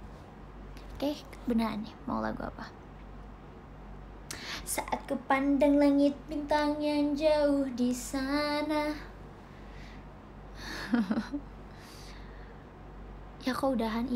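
A young woman talks softly and playfully close to a microphone.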